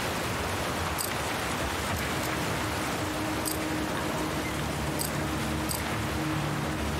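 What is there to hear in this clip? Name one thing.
Short soft clicks sound as menu options are picked.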